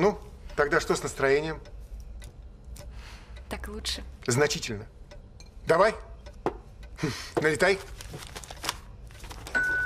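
A middle-aged man talks calmly and earnestly nearby.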